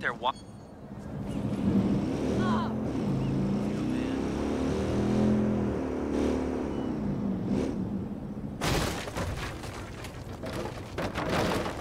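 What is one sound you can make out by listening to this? A motorcycle engine rumbles and revs.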